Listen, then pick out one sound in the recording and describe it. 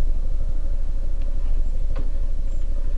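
Liquid trickles from a dispenser into a glass.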